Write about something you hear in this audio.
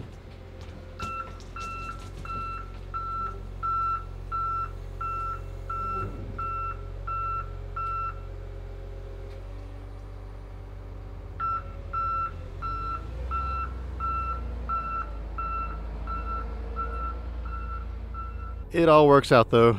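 A loader's reversing alarm beeps in a steady rhythm.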